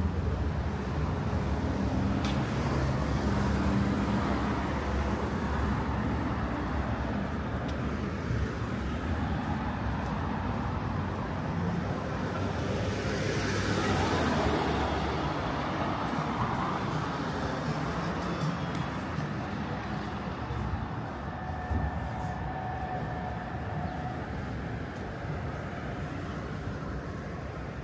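Car traffic passes by on a street outdoors.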